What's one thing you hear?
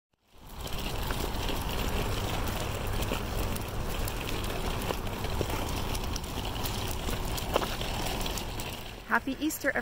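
Stroller wheels rumble steadily over pavement.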